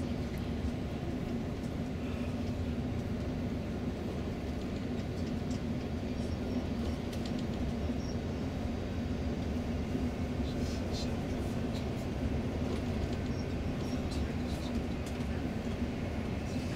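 An engine hums steadily from inside a moving vehicle.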